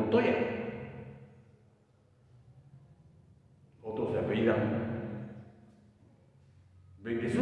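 An elderly man speaks with animation in a room with a slight echo.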